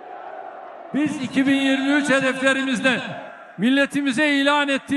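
An elderly man speaks forcefully into a microphone over loudspeakers.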